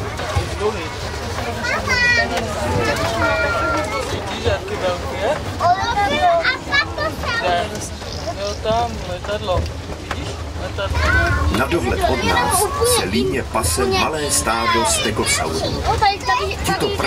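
Children and adults chatter and exclaim excitedly nearby.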